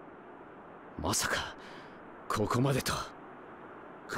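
A man speaks calmly, close to the microphone.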